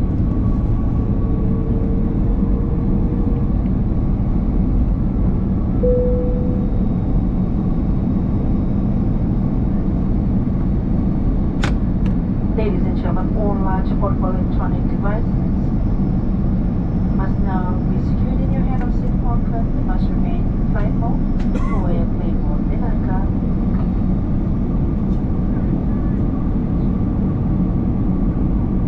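A jet engine roars steadily close by, with a deep rushing hum.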